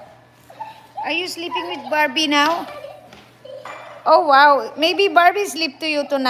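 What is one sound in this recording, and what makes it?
A woman speaks with animation close by, in a high, playful voice.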